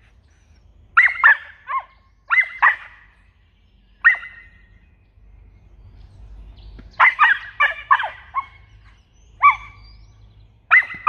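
A small dog barks in short, high yaps.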